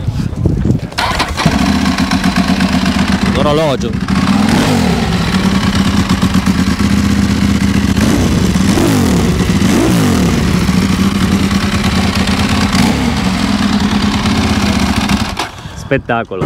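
A motorcycle engine idles with a steady rumble.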